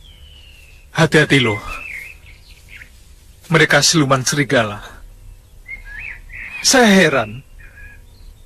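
A young man speaks tensely and close by.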